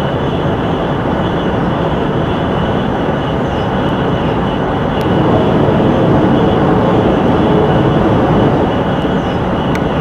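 A high-speed train roars steadily along the tracks.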